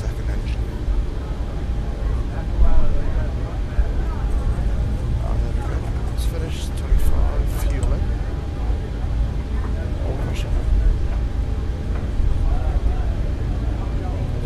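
A jet engine rumbles steadily.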